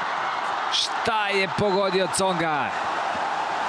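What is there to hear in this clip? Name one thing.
A young man shouts in triumph.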